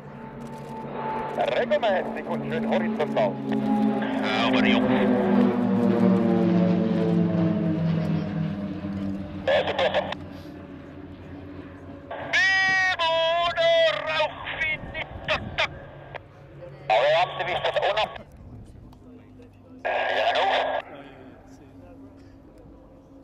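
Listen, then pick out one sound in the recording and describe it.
Propeller plane engines drone loudly overhead, dropping in pitch as they pass and then fading.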